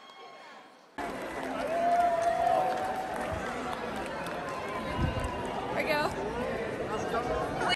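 A large crowd cheers and claps outdoors.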